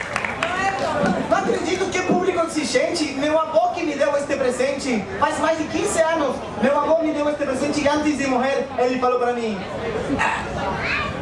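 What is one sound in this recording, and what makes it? A man talks with animation through a microphone and loudspeakers outdoors.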